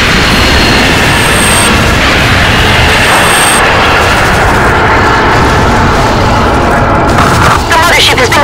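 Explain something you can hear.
Large explosions roar and rumble.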